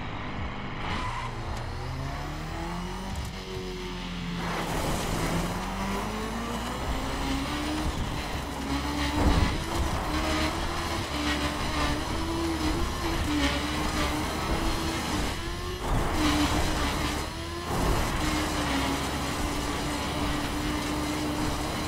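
A motorcycle engine revs up and roars as it speeds along.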